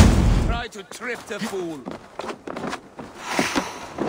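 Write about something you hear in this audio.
Hands scrape and grip while climbing a wooden wall.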